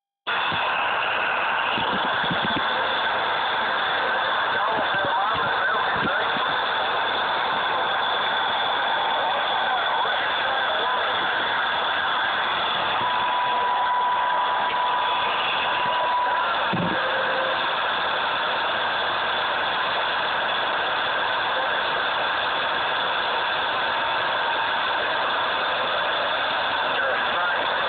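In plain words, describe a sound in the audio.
Static hisses and crackles steadily from a CB radio speaker.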